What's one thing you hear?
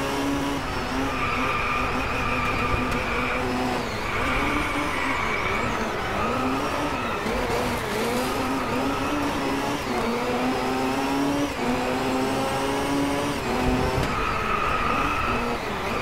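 A race car engine roars, rising and falling in pitch as it shifts gears.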